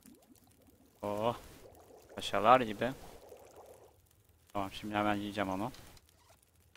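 A young man speaks with animation into a microphone, close up.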